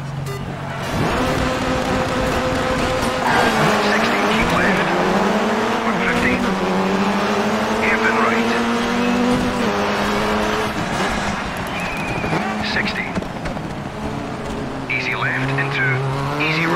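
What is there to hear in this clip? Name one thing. A rally car engine roars and revs hard, rising and dropping as it shifts gears.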